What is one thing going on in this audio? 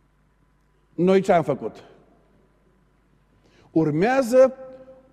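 A middle-aged man speaks with emphasis through a microphone.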